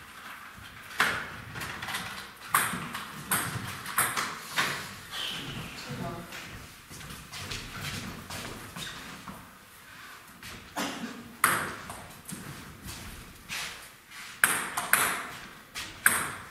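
Table tennis balls click sharply against paddles and a table in an echoing hall.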